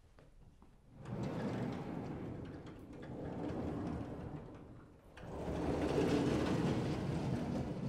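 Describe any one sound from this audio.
Large chalkboards rumble loudly as they slide along their rails.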